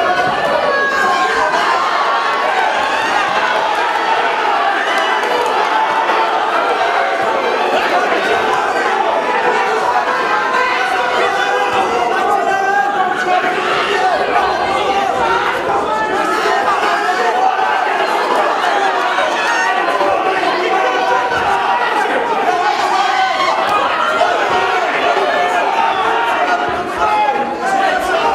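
A crowd in an echoing hall shouts and cheers loudly.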